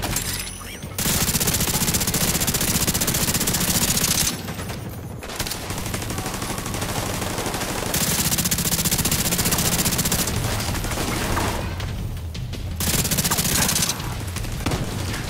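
Rapid gunfire crackles loudly in bursts.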